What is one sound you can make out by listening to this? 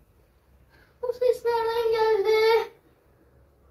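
A girl wails loudly in a long, wavering cry.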